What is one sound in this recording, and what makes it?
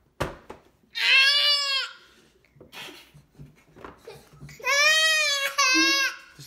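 A toddler girl cries loudly in high wails.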